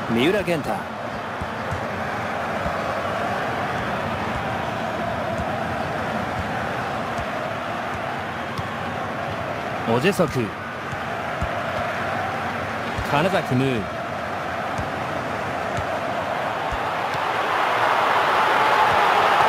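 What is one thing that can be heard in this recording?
A large stadium crowd roars steadily and swells toward the end.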